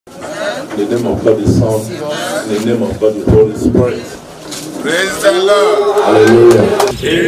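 A man speaks loudly to a crowd outdoors.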